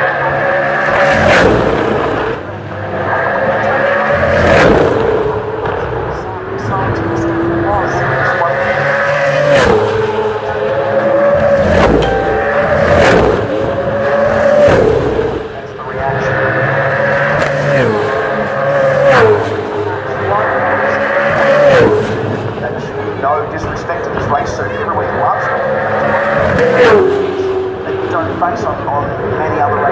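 Racing cars scream past one after another, each engine whine dropping in pitch as it goes by.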